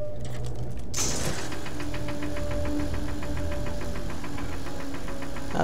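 A laser cutter fires with a steady buzzing hum.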